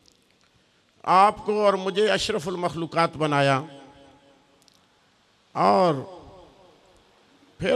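A man speaks loudly and with feeling into a microphone, heard over loudspeakers with some echo.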